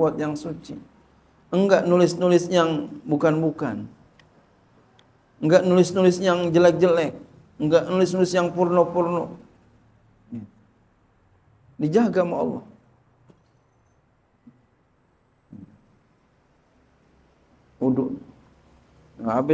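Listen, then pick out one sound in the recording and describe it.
A middle-aged man speaks slowly and earnestly into a microphone, pausing between phrases.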